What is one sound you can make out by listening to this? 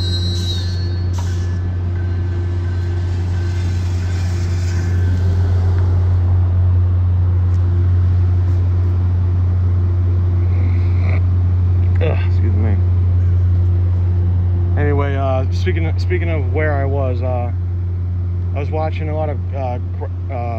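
A train's diesel engine idles with a steady low rumble nearby.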